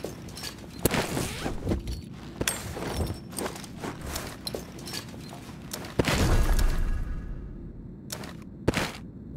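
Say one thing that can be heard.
Short clicks and rustles sound as items are picked up and moved.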